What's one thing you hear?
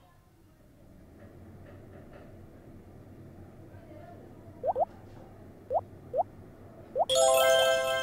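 Water gushes and splashes.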